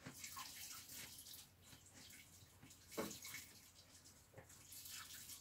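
A thin stream of liquid trickles and splashes into a bucket.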